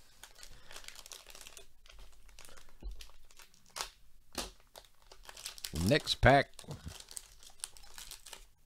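A foil wrapper crinkles and tears as it is torn open by hand.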